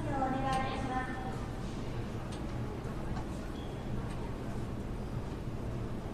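A stopped train hums steadily.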